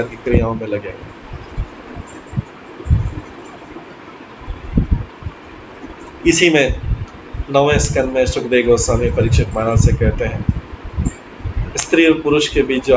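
A middle-aged man speaks calmly with pauses, heard through an online call.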